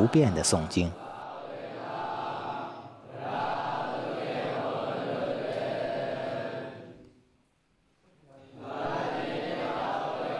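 A group of men chant together in a low, steady drone.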